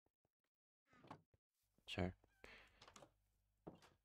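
Dull knocks of blows striking wood come in quick succession.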